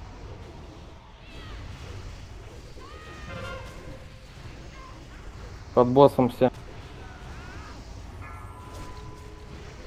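Magic spells chime and whoosh in a battle.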